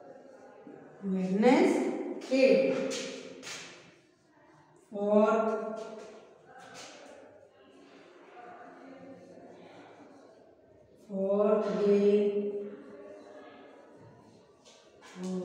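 A woman speaks slowly and clearly, close by, as if teaching.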